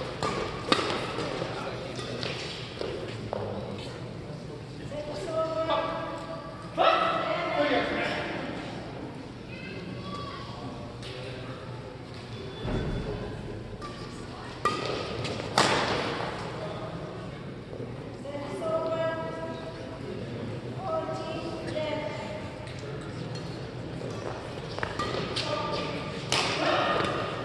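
Badminton rackets strike a shuttlecock with sharp smacks that echo in a large hall.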